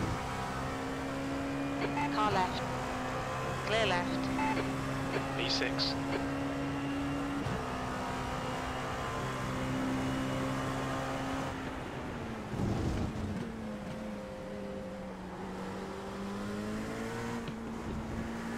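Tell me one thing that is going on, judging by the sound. A racing car engine drones steadily, its pitch shifting as it changes gear.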